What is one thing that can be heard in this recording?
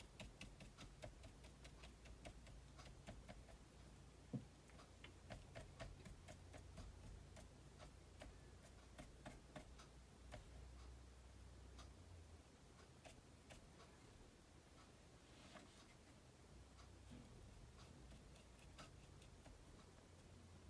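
A stiff brush taps and scratches softly on paper.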